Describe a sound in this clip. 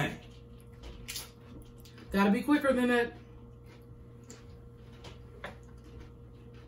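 Tortilla chips crunch as a man chews them close to a microphone.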